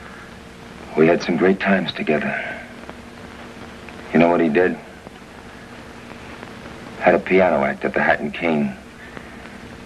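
A man speaks in a low, earnest voice close by.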